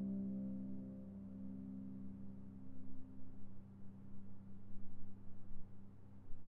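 A harp plays ringing notes that slowly fade.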